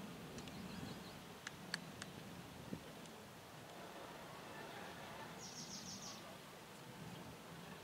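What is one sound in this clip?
Men talk faintly at a distance outdoors.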